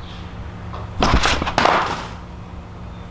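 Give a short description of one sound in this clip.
Thick card packaging rustles as it is handled.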